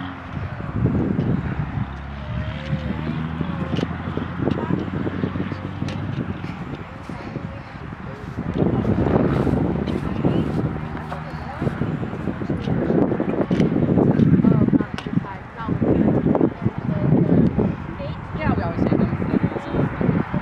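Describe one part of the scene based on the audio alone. A horse canters with dull, rhythmic hoofbeats on grass.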